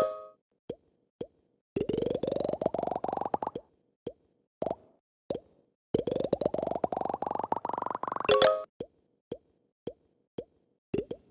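A ball bounces with short boing sounds.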